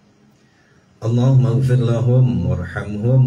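A middle-aged man chants loudly into a microphone, close by.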